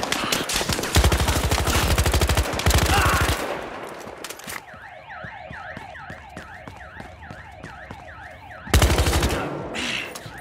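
A rifle fires rapid bursts of gunshots close by.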